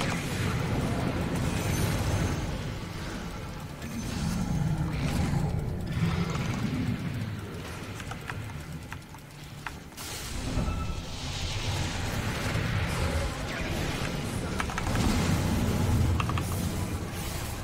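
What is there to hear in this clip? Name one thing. Magical spell effects crackle and whoosh during a fantasy battle.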